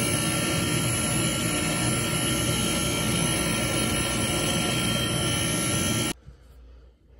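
A grinding machine runs with a steady roar against metal.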